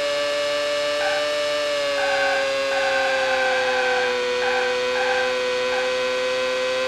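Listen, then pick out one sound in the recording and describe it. Tyres squeal on a tight bend.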